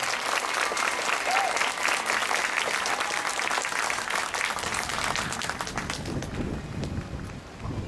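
A marching band plays brass music outdoors.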